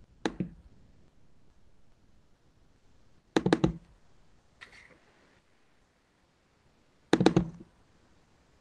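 A computer mouse clicks several times in quick bursts.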